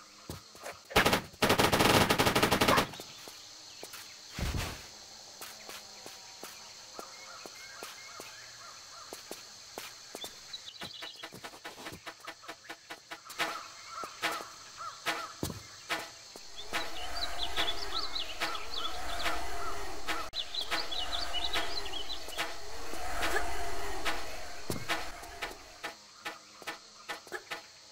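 Footsteps tap quickly on stone and earth.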